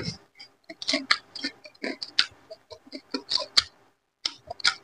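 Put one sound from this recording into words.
A man licks and sucks food from his fingers.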